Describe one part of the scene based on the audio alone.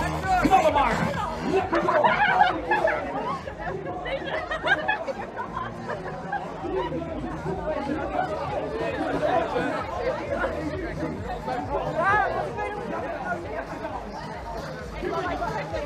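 A crowd of runners and onlookers chatter and cheer outdoors.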